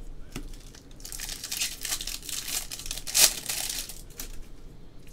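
A foil wrapper crinkles loudly as it is torn open.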